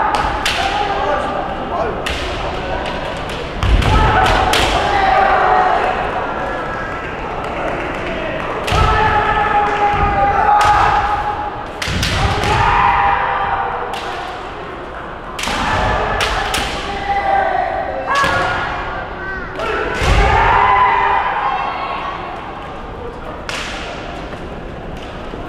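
Fighters shout loud, long cries that echo through a large hall.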